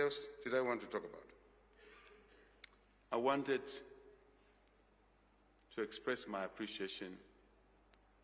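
A man speaks slowly and formally into a microphone, with pauses between phrases.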